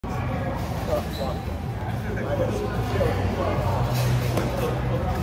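Gloved punches thud against pads.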